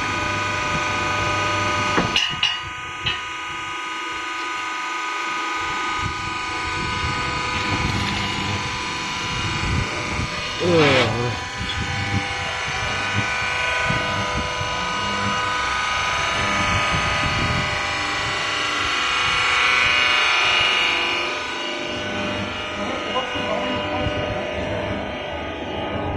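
A machine hums steadily with a loud motor whine.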